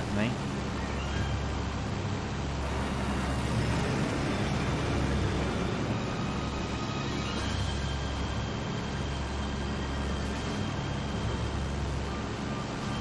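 A propeller engine drones steadily.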